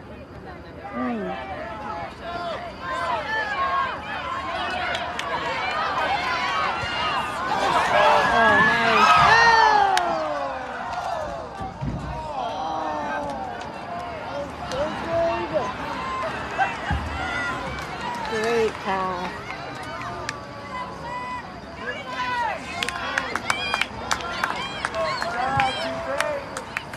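A crowd of spectators cheers and shouts outdoors, swelling loudly as a shot goes toward the goal.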